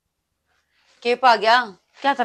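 A young woman speaks loudly and sharply, close by.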